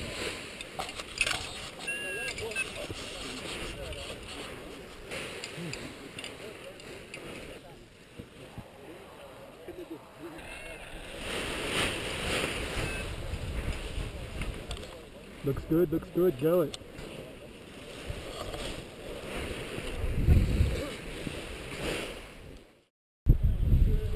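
Paraglider fabric rustles and flaps in the wind.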